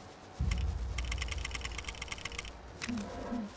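Game menu clicks tick rapidly as a cursor scrolls.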